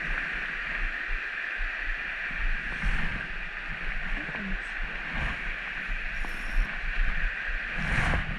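A shallow stream ripples and burbles steadily over stones.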